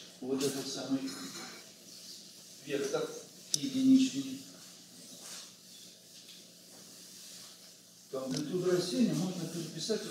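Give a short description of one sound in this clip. An elderly man speaks calmly, a little way off, in an echoing room.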